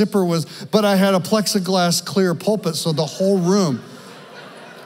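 A man speaks with animation into a microphone over loudspeakers in a large hall.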